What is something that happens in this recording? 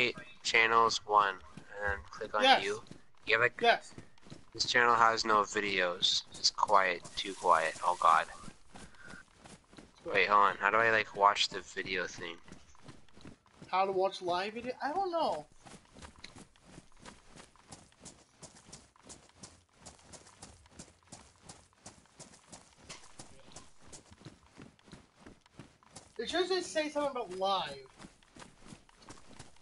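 Footsteps run quickly and steadily over hard ground and grass.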